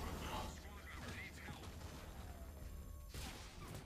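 A futuristic energy weapon fires in short bursts.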